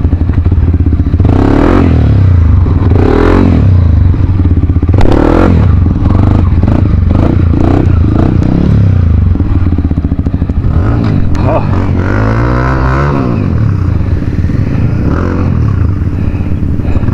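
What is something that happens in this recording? A motorbike engine idles with a steady low rumble.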